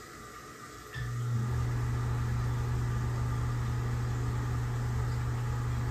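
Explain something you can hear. A ventilation fan hums steadily and loudly.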